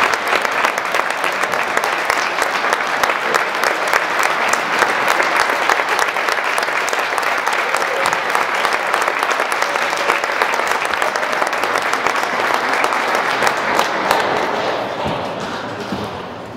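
A school band plays music in a large echoing hall.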